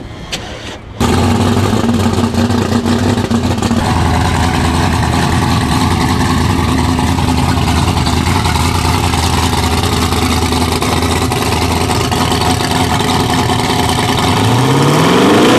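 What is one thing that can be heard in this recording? A supercharged twin-turbo V8 drag car engine idles with a lumpy beat.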